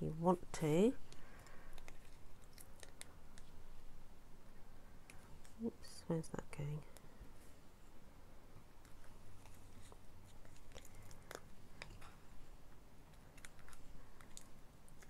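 Paper rustles and crinkles softly as it is handled.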